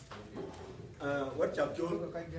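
A second man speaks up, close by.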